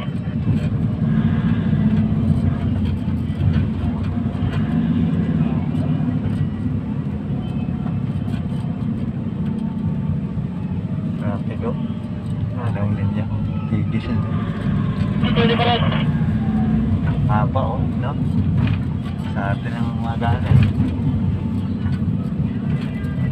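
Cars drive past close by on a road.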